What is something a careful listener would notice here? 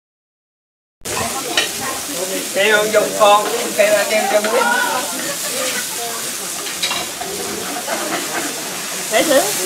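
Food sizzles in frying pans.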